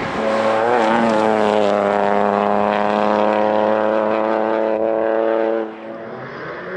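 A rally car engine roars at high revs as the car speeds past.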